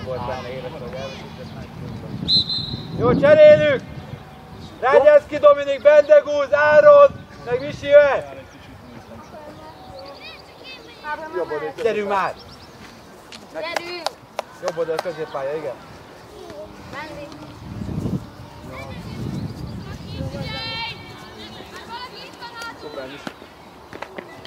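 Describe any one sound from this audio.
Children shout to each other across an open field outdoors.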